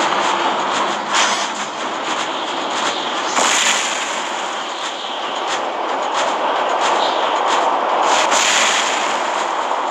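Cannons fire in rapid bursts.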